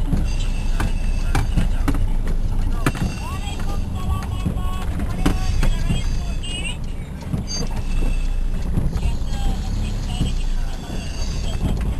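Rain patters on a car windshield.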